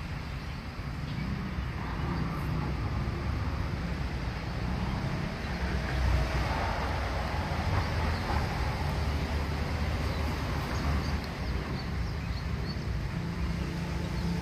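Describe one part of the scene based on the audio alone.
Wind rustles through tree leaves outdoors.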